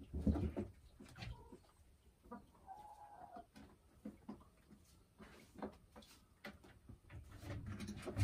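A hen clucks softly and croons close by.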